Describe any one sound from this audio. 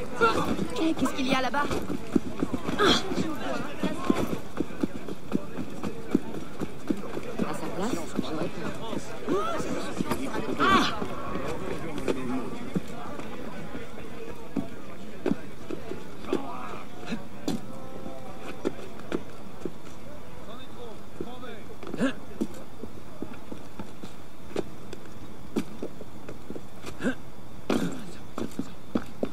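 Footsteps patter quickly on stone and roof tiles.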